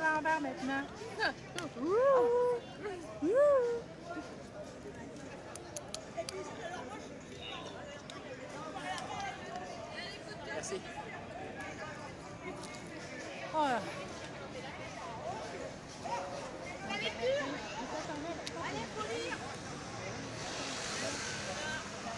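A crowd of men and women chatters outdoors nearby.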